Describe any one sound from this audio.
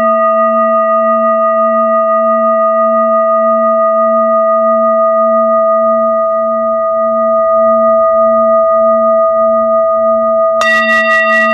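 A singing bowl rings with a steady, wavering hum.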